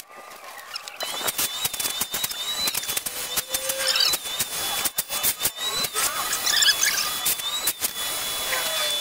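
A vacuum motor starts up and roars loudly and steadily.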